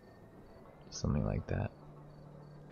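A young man lets out a brief loud exclamation.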